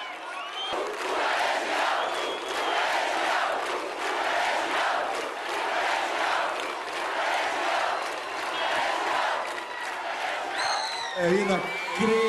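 A large crowd cheers and sings along loudly in a big echoing hall.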